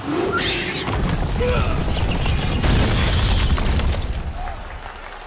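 Large rocks crumble and break apart with a heavy rumble.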